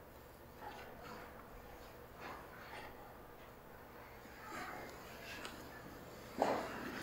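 A young girl speaks quietly nearby.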